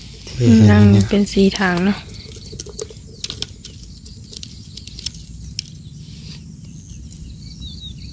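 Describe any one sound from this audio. Small fish flap and splash in a bucket of shallow water.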